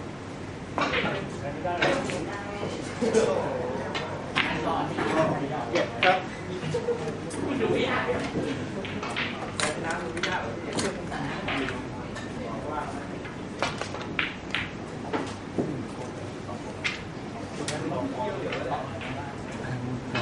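A cue tip strikes a snooker ball with a sharp tap.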